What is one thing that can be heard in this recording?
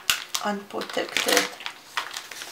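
Foil crinkles and rustles under hands.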